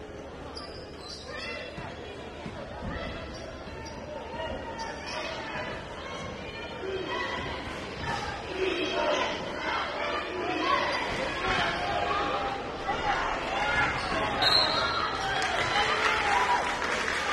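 A crowd cheers and shouts in a large echoing gym, growing louder.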